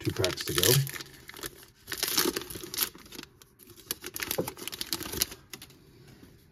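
A plastic wrapper crinkles and tears open.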